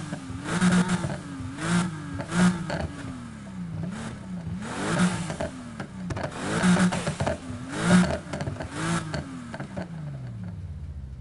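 A sports car engine revs hard, rising and falling again and again.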